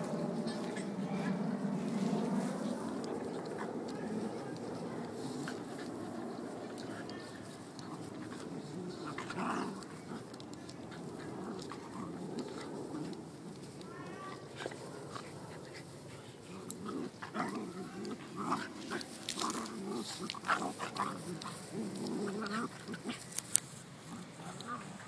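Two dogs growl and snarl as they wrestle playfully.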